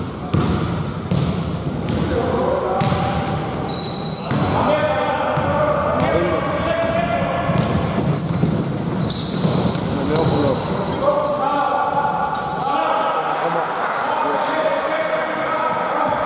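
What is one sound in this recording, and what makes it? Men call out and shout to each other across the court.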